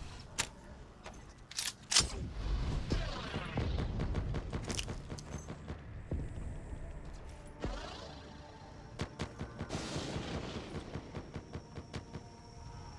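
Guns fire in sharp, quick bursts.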